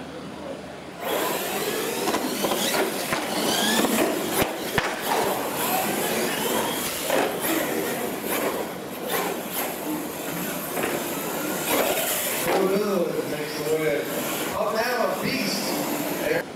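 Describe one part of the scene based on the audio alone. Electric motors of radio-controlled monster trucks whine as the trucks race.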